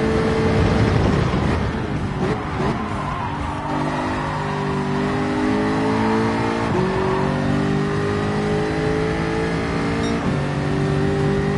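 A race car engine drops in pitch as the car brakes, then revs up again through the gears.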